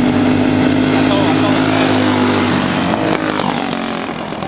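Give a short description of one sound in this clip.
A kart engine roars close by and drops in pitch as it passes.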